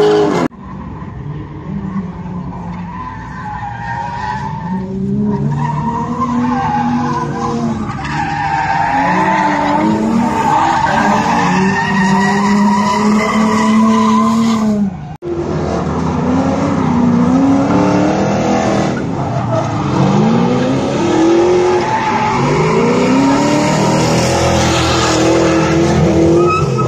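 Car engines roar and rev hard, rising and falling.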